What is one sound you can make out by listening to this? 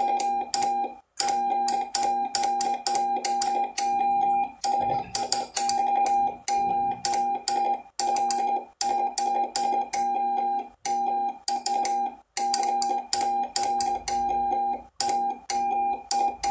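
A radio receiver beeps out Morse code in steady pitched tones.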